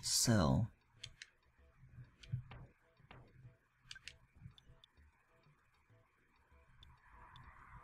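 Short electronic blips sound as a menu cursor moves.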